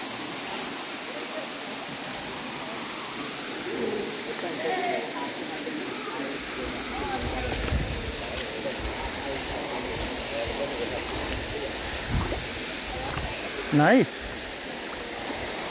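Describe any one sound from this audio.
Shallow water trickles steadily over stones.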